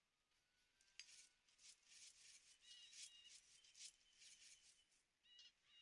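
Swords clash in a battle.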